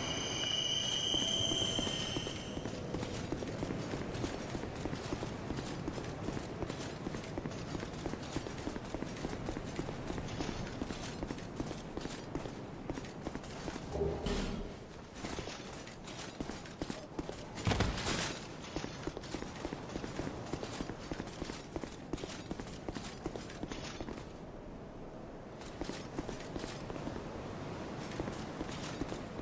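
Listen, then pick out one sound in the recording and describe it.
Metal armour clinks with each stride.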